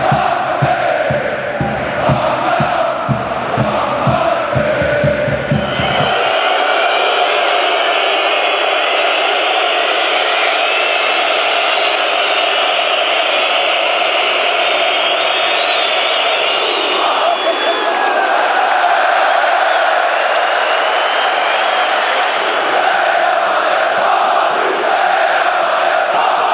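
A large stadium crowd chants and sings loudly, echoing through the arena.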